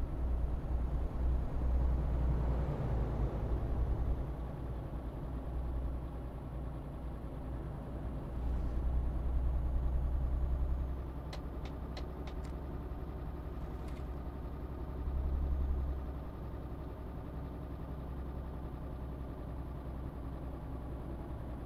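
A truck engine hums steadily as the truck drives along a road.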